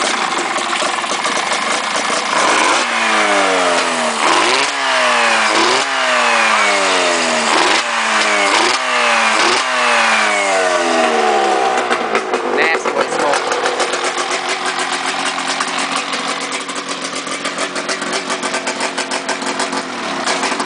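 A two-stroke snowmobile engine in a go-kart idles unevenly.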